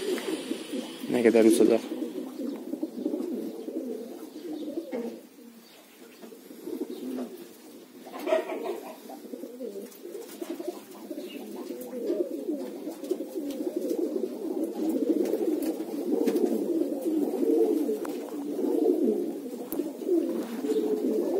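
Domestic pigeons coo in a flock.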